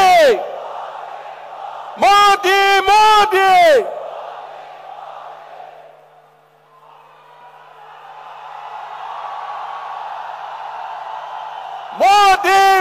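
A crowd chants loudly in unison, in short bursts.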